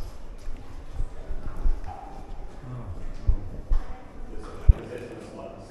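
Fingers grip and knock against a handheld device close by with dull thumps.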